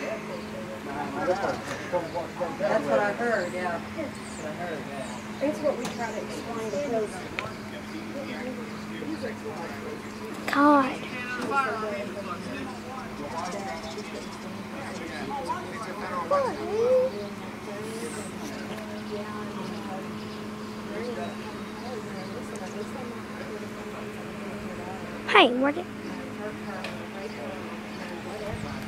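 Men shout and talk far off across an open street.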